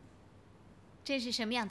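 A young woman speaks calmly and cheerfully.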